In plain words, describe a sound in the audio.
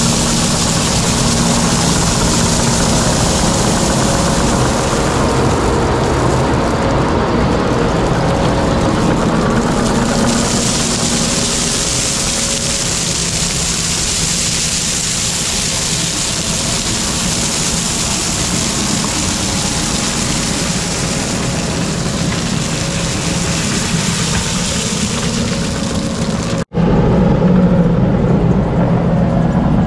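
A diesel engine rumbles and whines steadily close by.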